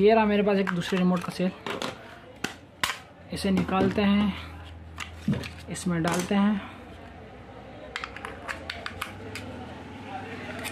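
Plastic parts of a remote control click and rattle as they are handled.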